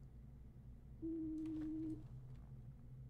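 A game buzzer sounds for a wrong answer.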